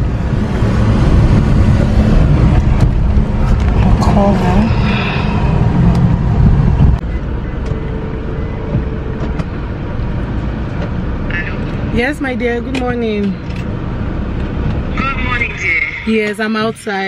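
A car engine rumbles and road noise fills the cabin.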